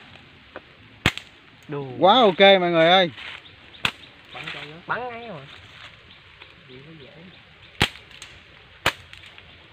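A slingshot snaps sharply as it is shot.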